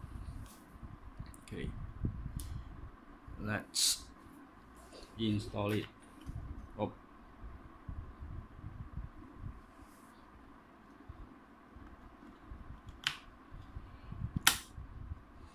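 Small plastic parts click and tap.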